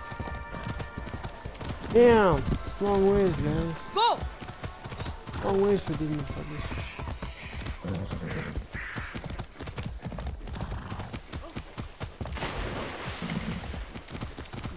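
Horse hooves thud steadily on soft ground.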